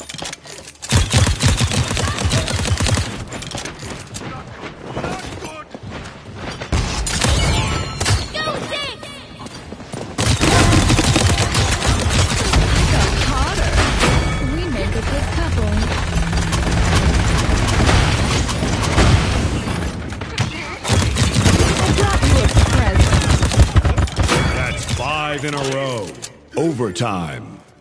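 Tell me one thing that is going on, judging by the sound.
Energy weapons fire in rapid bursts with crackling zaps.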